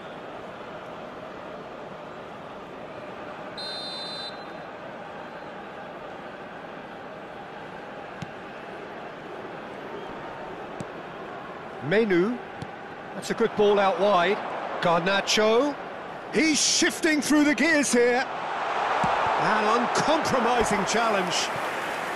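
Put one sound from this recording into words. A large stadium crowd murmurs steadily and swells into a loud roar.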